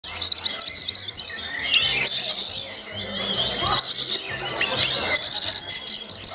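Several oriental magpie-robins sing rapid, loud, varied phrases.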